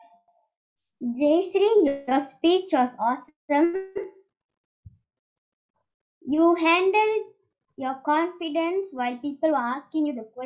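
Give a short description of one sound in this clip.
A girl speaks with animation over an online call.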